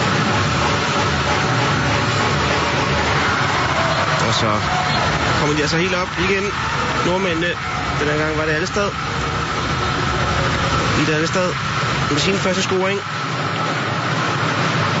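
A large crowd cheers and roars in a big echoing hall.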